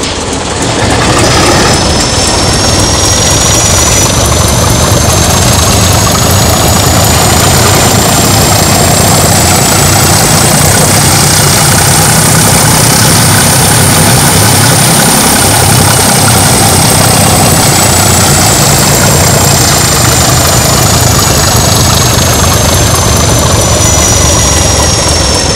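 A diesel locomotive engine rumbles and whines steadily close by.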